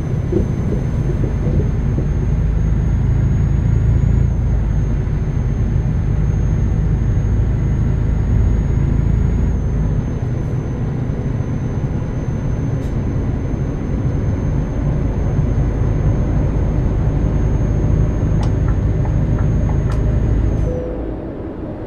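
A truck engine rumbles steadily as the truck drives along.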